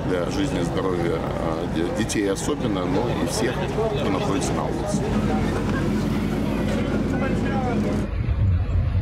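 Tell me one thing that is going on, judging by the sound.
A crowd of men, women and children talks and calls out nearby.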